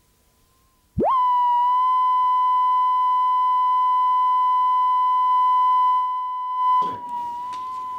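A steady high test tone sounds.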